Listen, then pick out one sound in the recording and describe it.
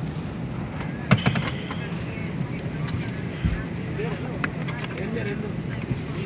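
Overhead bins knock and rattle as passengers pull out bags.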